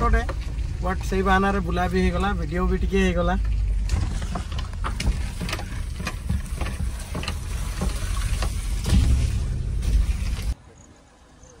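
A car engine hums and rumbles along the road.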